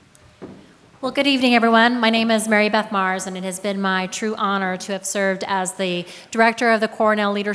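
A young woman speaks calmly through a microphone in a large hall.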